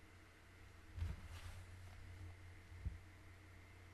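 A microphone is bumped with a few dull thumps.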